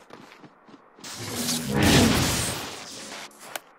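A fiery blast whooshes and roars.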